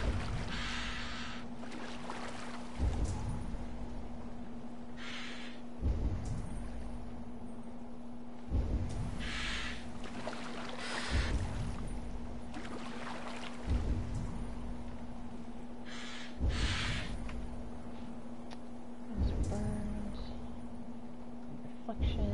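Water laps and washes against a small wooden boat.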